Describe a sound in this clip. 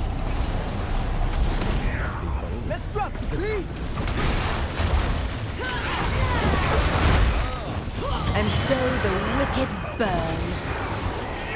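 Game spell blasts and impact effects crackle and boom in a fast battle.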